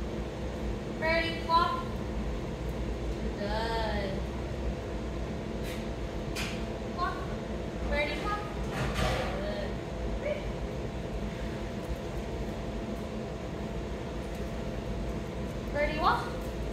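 A woman speaks to a dog in a high, encouraging voice.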